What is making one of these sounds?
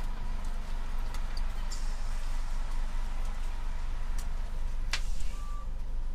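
A CNG city bus engine rumbles low, heard from inside the bus.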